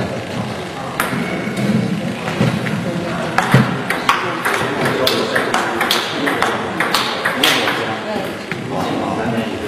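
A table tennis ball clicks back and forth between paddles and table in a rally.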